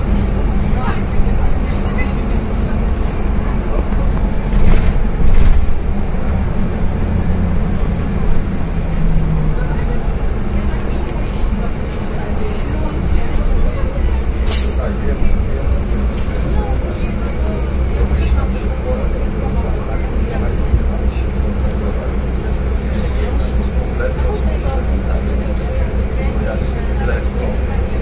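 A bus engine hums and rumbles steadily from inside the bus.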